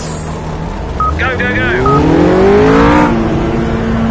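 A GT3 race car engine revs hard as the car pulls away.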